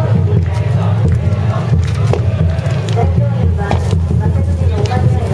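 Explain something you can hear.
Burning wood crackles and pops.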